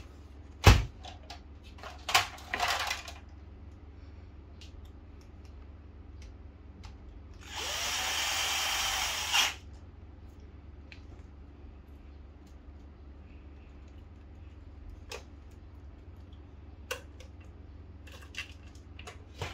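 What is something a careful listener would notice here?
Metal and plastic parts click and clack as hands handle them.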